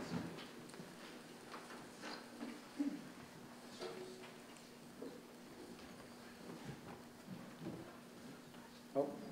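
An elderly man speaks quietly and slowly, heard through a microphone.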